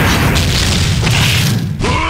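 Punches land with heavy smacks.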